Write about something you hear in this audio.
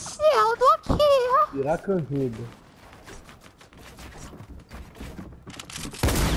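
A pickaxe strikes wooden walls with sharp knocks.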